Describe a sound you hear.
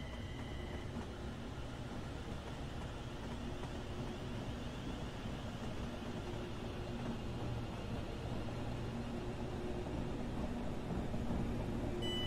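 A train's wheels rumble and clatter on the rails.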